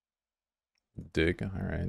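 A young man speaks into a close microphone.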